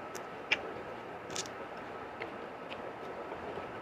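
A man chews and smacks his lips up close.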